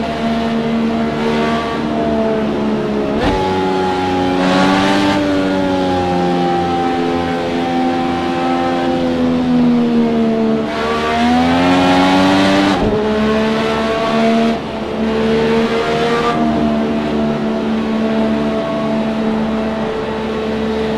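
A racing car engine whines loudly at high revs, its pitch rising and falling.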